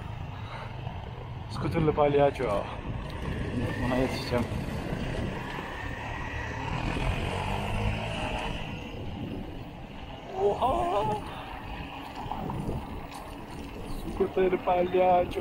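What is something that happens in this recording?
Bicycle tyres rumble over paving stones.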